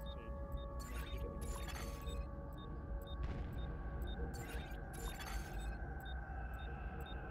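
A countdown timer beeps at a steady, quick pace.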